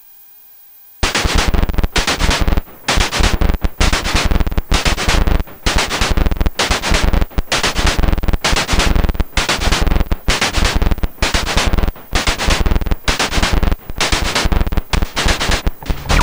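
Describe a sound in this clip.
A synthesizer plays a loud, pulsing electronic rhythm.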